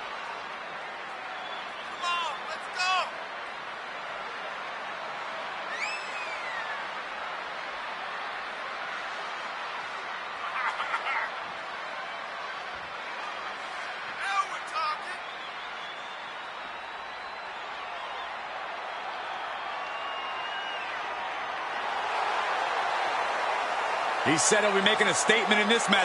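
A large crowd roars and cheers steadily in a big echoing arena.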